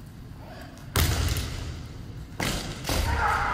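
Bamboo swords strike with sharp cracks in a large echoing hall.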